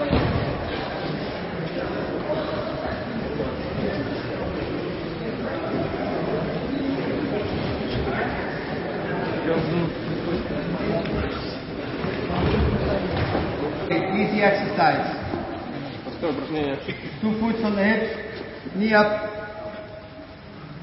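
Many people talk at once in a large echoing hall.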